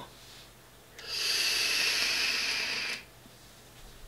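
A man draws a long hissing puff on an electronic vape.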